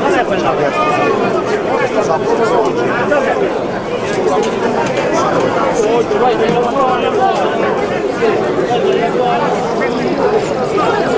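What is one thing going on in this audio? A large crowd of men and women chatters loudly all around.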